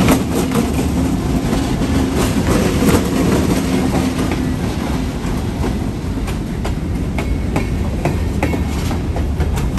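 Train wheels clack and squeal over rail joints.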